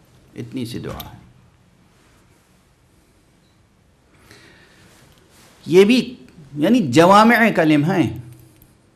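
An elderly man speaks into a microphone, his voice rising into a melodic, chanting recitation.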